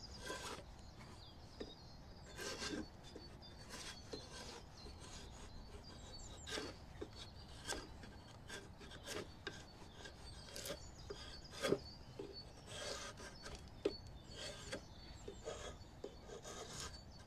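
A drawknife shaves and scrapes wood in short strokes.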